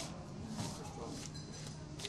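Playing cards slide across a felt table.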